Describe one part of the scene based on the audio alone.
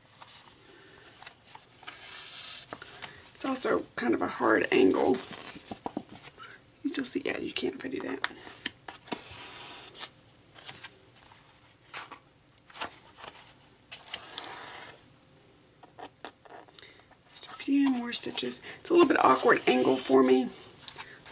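Stiff card rustles and crackles as it is handled.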